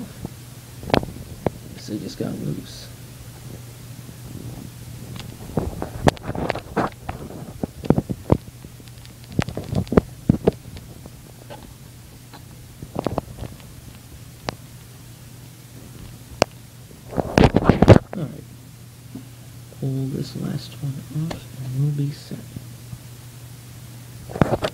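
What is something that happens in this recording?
A laptop's plastic casing clicks and knocks under handling.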